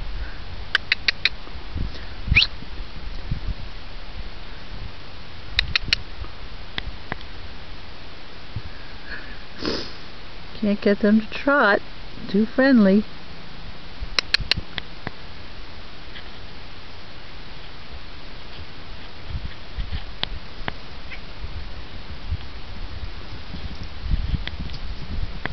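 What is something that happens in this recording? Horses' hooves thud softly on grass.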